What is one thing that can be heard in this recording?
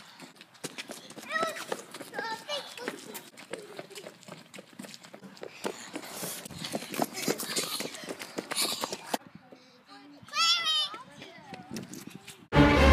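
Children shout and laugh outdoors.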